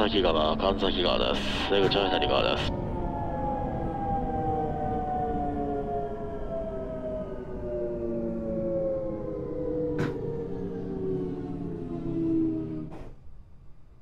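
An electric train motor whines and falls steadily in pitch as the train slows.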